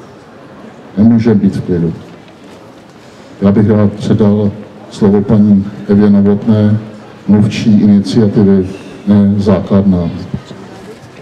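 An elderly man speaks calmly into a microphone over a loudspeaker.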